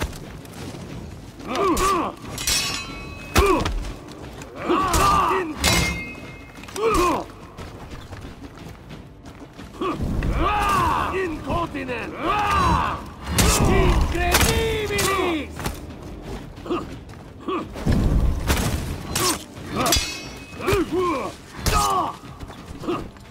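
Swords clash with sharp metallic clangs.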